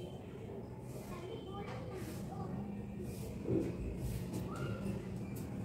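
Hands brush and smooth cloth with a soft rustle.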